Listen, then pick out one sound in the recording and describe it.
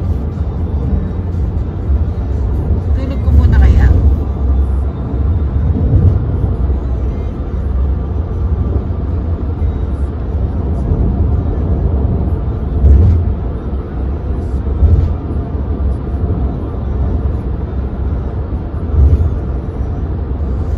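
A car engine rumbles low and steadily from inside the car.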